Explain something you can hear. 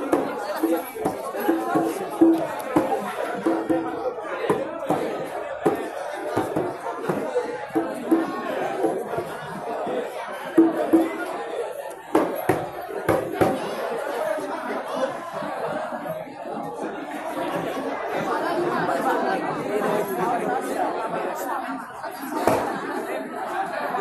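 Hand drums are beaten in a quick rhythm close by.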